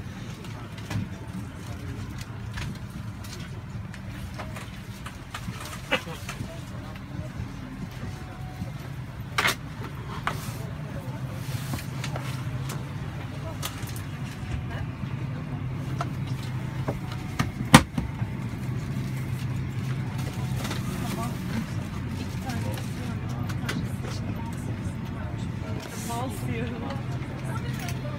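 A steady low hum of an aircraft cabin fills the air.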